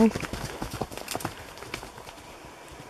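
Hooves crunch through snow close by.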